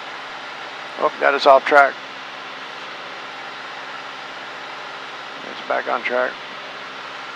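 A man speaks briefly through a headset microphone.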